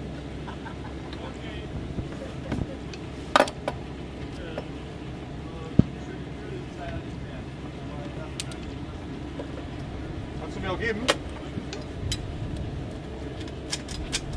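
Boots knock on a metal ladder.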